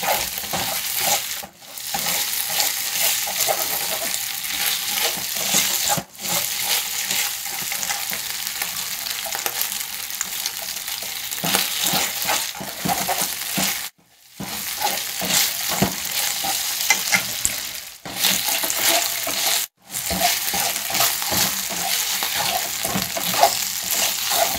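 Chopsticks scrape and clatter against a pan.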